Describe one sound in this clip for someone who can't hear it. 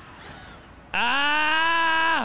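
A man screams loudly into a microphone.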